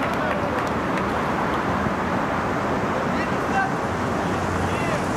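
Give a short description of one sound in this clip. Spectators chatter nearby.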